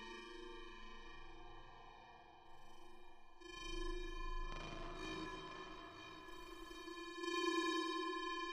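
A synthesizer plays sustained, shifting tones.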